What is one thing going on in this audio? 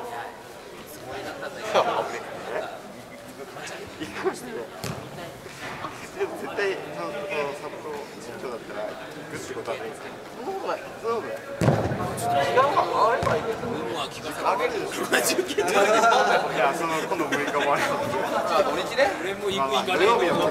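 Young players shout and call to each other in a large echoing hall.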